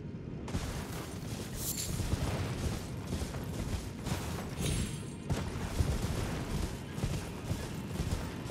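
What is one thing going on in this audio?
Horse hooves thud rapidly on soft ground at a gallop.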